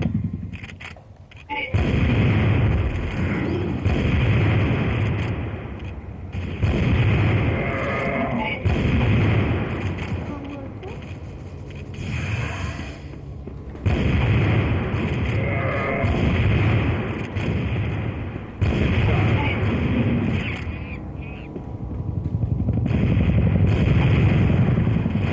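A sniper rifle fires single loud shots, one after another.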